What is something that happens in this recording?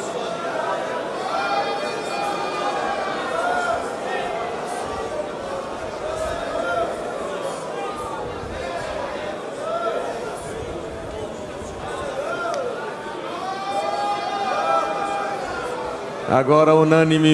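A large crowd prays and sings aloud together in a big echoing hall.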